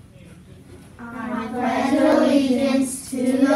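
A group of children recite together in unison.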